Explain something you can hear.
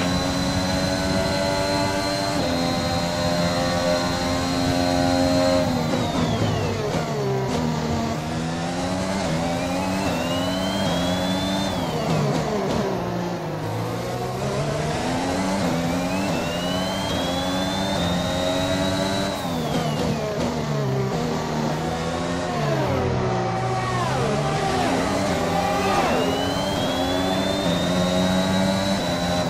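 A racing car engine screams at high revs, dropping sharply when braking and climbing again through the gears.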